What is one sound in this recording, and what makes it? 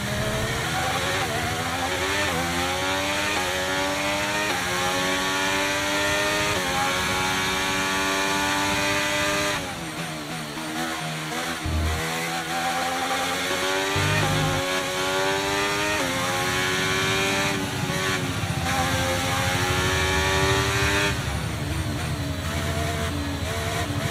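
A racing car engine screams, rising in pitch through each gear and dropping at each shift.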